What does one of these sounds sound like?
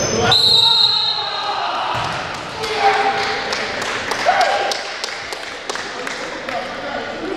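Men shout and call out during play in a large echoing gym.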